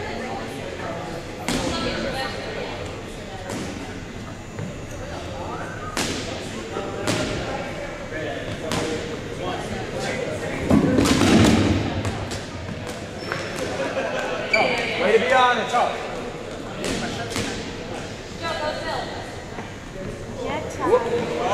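A crowd of men and women shout and call out across the gym.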